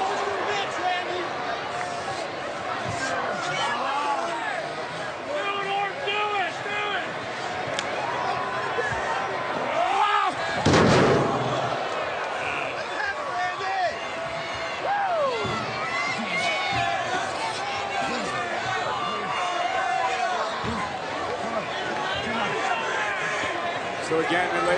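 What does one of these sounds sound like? A large crowd cheers and shouts in a big echoing arena.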